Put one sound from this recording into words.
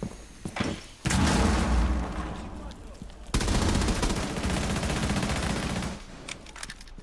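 An automatic gun fires rapid bursts at close range.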